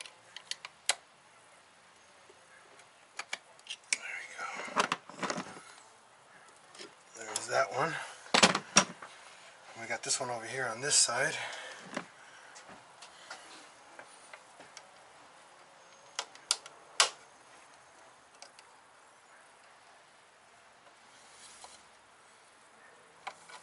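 Metal tools click and clink against an engine.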